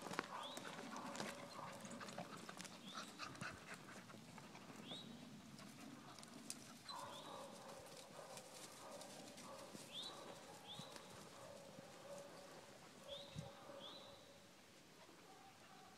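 Dogs scamper on a dirt trail and rustle through dry leaves.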